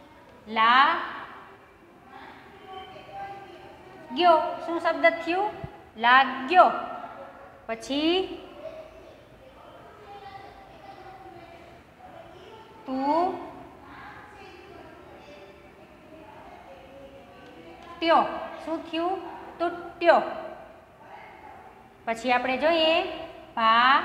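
A young woman speaks clearly and slowly, as if teaching.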